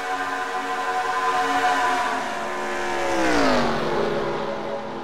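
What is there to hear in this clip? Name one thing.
Race car engines roar loudly, with pitch dropping as cars pass by.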